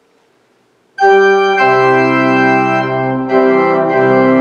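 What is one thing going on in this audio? An organ plays loud sustained chords in a reverberant hall.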